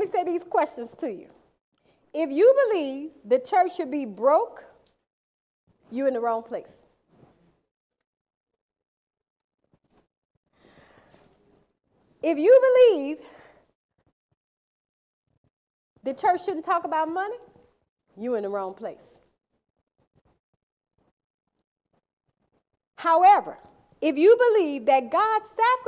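A woman speaks into a microphone in bursts, with long pauses between them.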